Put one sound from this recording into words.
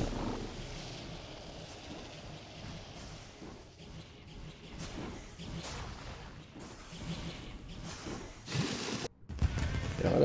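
Video game combat effects clash and zap.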